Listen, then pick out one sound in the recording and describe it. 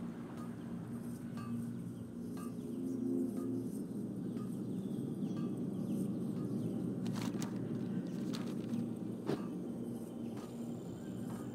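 Footsteps run across soft ground.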